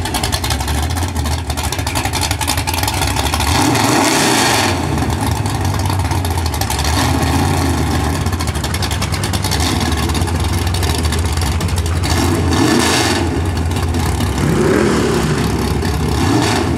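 A muscle car engine idles with a deep, loud rumble and revs up in bursts.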